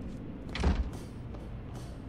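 Footsteps clatter on metal stairs.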